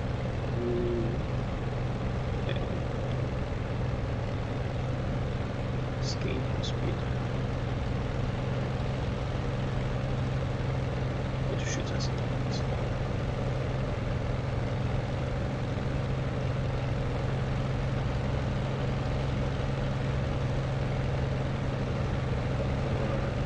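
Wind rushes past the cockpit.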